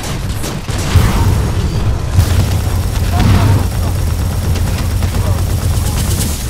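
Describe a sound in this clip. Explosions boom with electric crackling.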